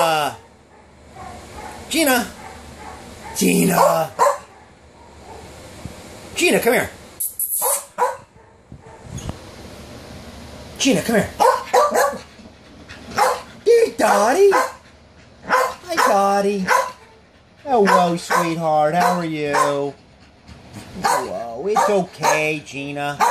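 A small dog barks and howls in high yelps close by.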